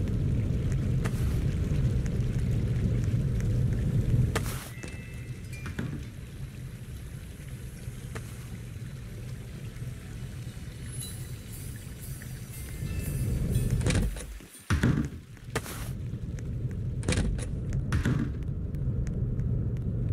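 Footsteps thud steadily on the ground.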